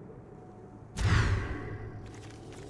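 A short whoosh sweeps past as playing cards are dealt.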